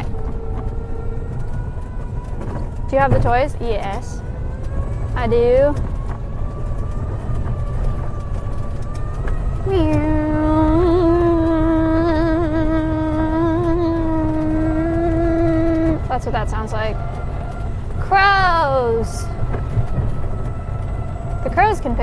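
A vehicle engine rumbles steadily while driving over rough ground.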